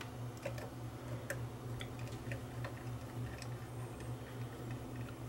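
Small plastic and metal parts click and tick under fingers.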